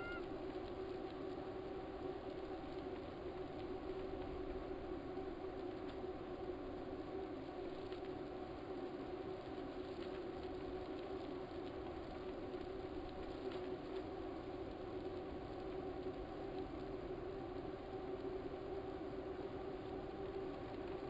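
A bike trainer whirs steadily.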